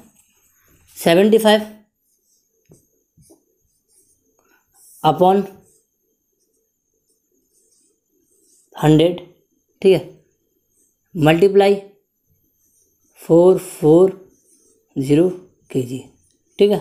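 A young man speaks calmly in short phrases, close to a microphone.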